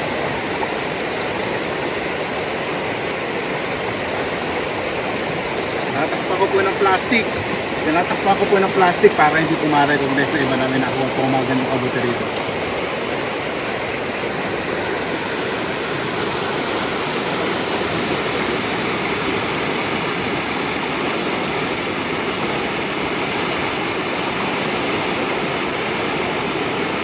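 A river rushes steadily over rocks.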